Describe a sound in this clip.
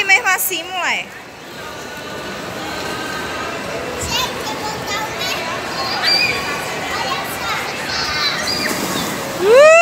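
A young girl squeals and shrieks with excitement close by.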